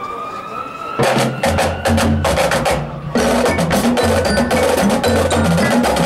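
A drum line beats drums in a loud, fast rhythm.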